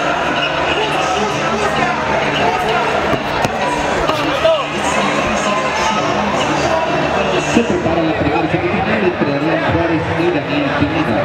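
A crowd of men and women chatters and shouts in a large echoing hall.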